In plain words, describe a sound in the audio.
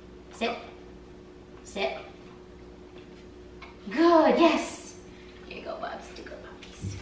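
A young woman speaks to dogs in short, upbeat commands close by.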